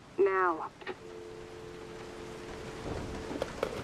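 A telephone dial tone hums steadily.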